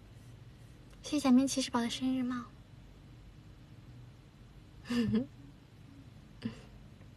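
A young woman speaks softly and playfully close to a microphone.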